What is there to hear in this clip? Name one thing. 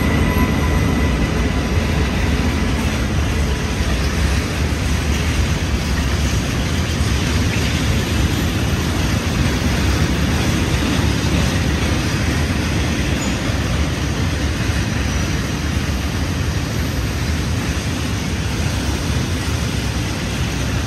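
A long freight train rumbles and clatters past close by on the rails.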